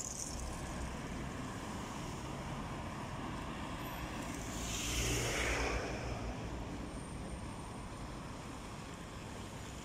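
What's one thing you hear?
Cars drive past on a road outdoors.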